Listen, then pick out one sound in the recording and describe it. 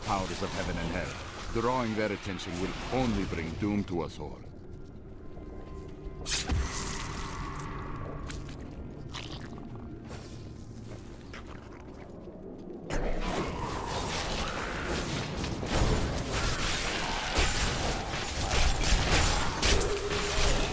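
Spells and weapons crash and burst in a fierce fight.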